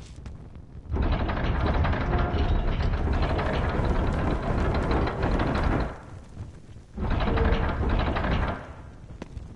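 Heavy stone blocks grind and rumble as they slide.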